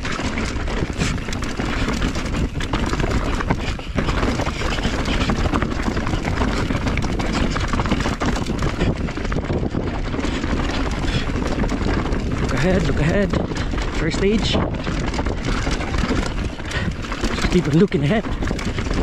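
Bicycle tyres rattle and crunch over a rough dirt trail.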